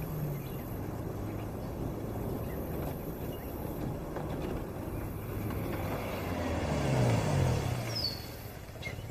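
Tyres roll on pavement.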